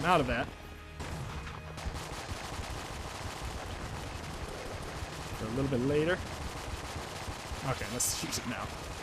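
Rapid gunfire crackles steadily from a video game.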